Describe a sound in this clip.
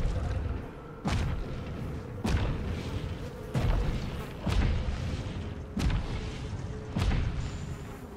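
A huge beast stomps with heavy, booming footsteps.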